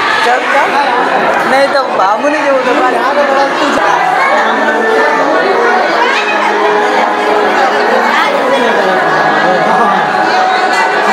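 A crowd of men and women talks and calls out nearby.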